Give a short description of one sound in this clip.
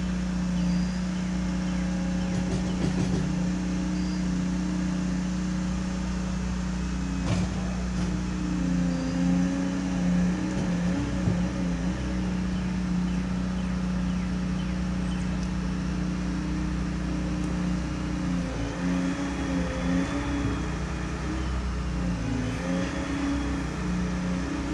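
A machine engine rumbles steadily and its pitch rises and falls now and then.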